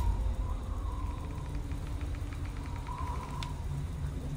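A game menu ticks rapidly and softly.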